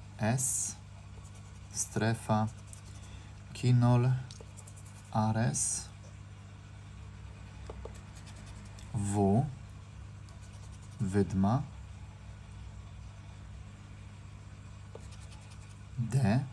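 A coin scratches across a scratch card.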